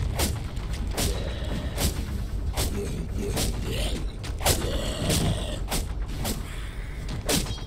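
Weapons strike and clash repeatedly in a fight.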